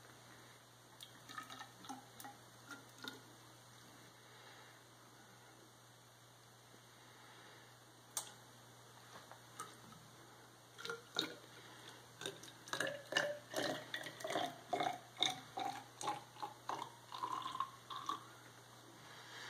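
Liquid pours from a bottle into a tall narrow glass, rising in pitch as it fills.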